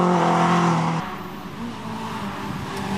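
A car engine hums faintly in the distance.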